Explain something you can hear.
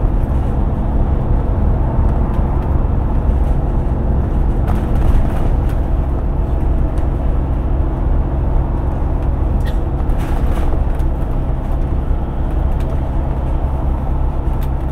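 Tyres roar on the road surface.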